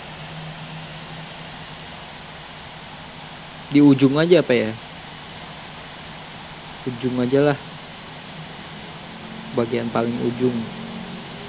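A jet airliner's engines hum steadily at idle.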